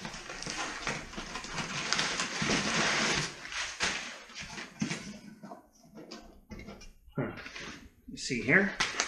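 Cardboard boxes and packing material rustle and scrape.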